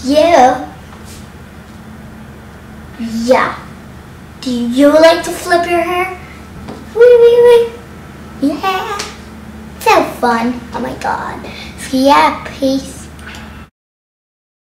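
A young girl sings loudly close by.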